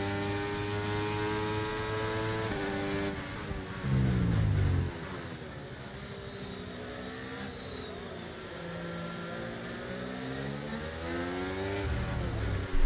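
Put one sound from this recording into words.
A racing car engine revs high and shifts pitch up and down through gear changes.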